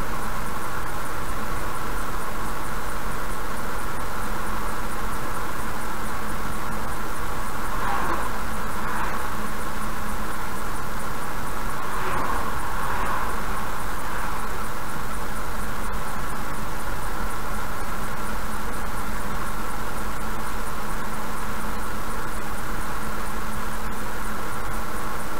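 A car drives steadily along a highway with a constant engine and road hum.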